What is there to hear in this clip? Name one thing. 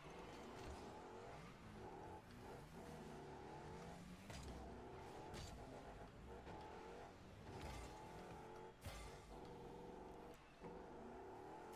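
A racing car engine hums and revs steadily.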